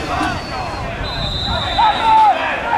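A referee's whistle blows a short steady blast.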